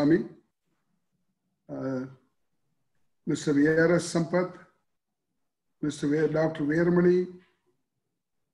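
An elderly man speaks calmly in short phrases over an online call.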